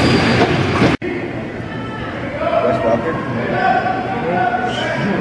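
Young players shout and call out in a large echoing arena.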